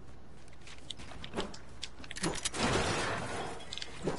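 Building pieces snap into place with sharp clacks.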